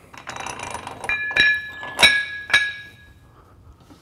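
Metal weight plates clank and ring against each other.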